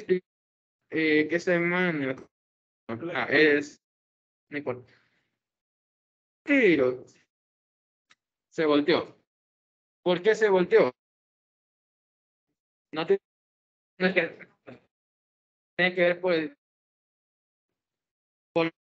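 A young man speaks calmly in short phrases through a microphone.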